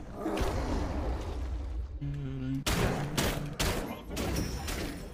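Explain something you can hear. Game combat effects crash and whoosh in bursts.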